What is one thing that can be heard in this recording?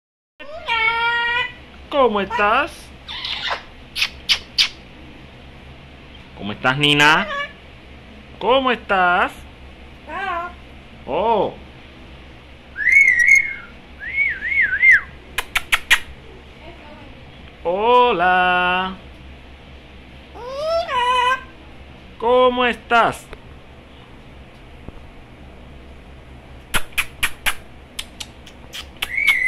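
A parrot close by squawks, whistles and chatters in bursts.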